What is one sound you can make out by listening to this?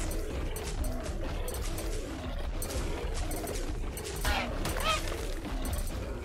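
Heavy footsteps of a large creature thud across sand.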